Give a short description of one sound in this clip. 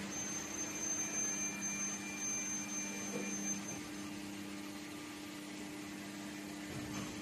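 A large machine hums steadily with a mechanical whine.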